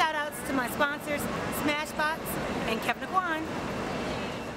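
A young woman speaks cheerfully and close to a microphone.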